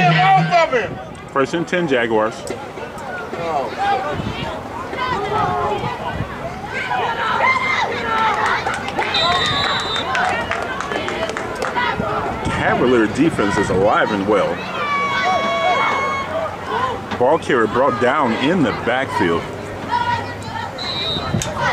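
Spectators and players shout and call out outdoors.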